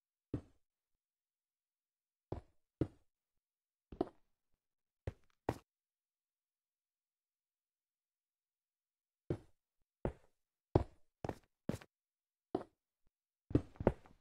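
Blocks are placed and broken with short, dull knocks.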